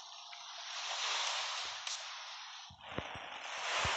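A car engine roars as a vehicle drives over rough ground.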